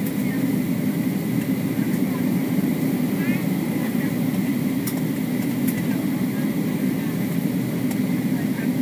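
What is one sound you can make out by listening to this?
Jet engines roar steadily through the cabin of a flying airliner.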